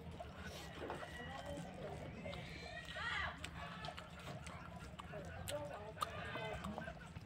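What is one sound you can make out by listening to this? A woman chews food noisily close to a microphone, with wet smacking sounds.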